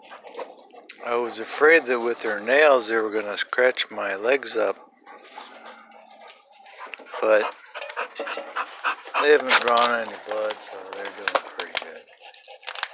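A dog whines in high, wavering cries close by.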